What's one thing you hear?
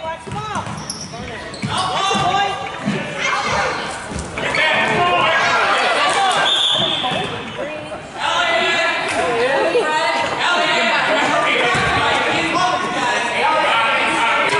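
A crowd of adults talks and cheers in a large echoing hall.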